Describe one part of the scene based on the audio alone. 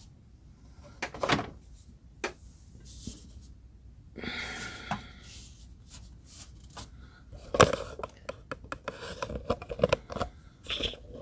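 Hands pick up and handle a small toy car, with soft clicks and rubbing close by.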